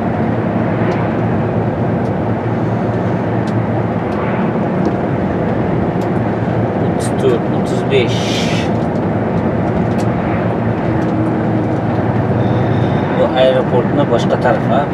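A bus engine drones, heard from inside the cab.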